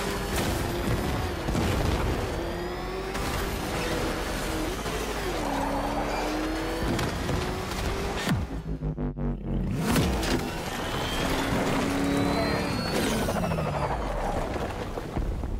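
A powerful engine roars and revs up and down.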